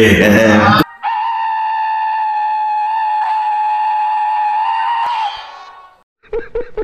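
A cartoon cat lets out a long, steady, high scream that fades away.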